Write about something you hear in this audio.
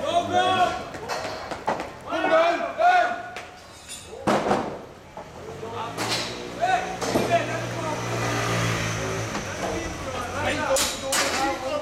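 Wooden planks knock and clatter.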